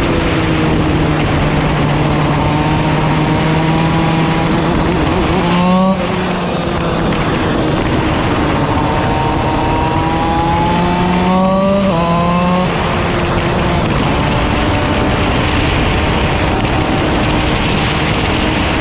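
A kart engine roars up close, its pitch rising and falling as it speeds up and slows for corners.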